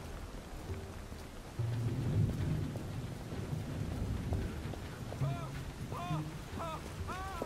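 Footsteps crunch softly on gravel.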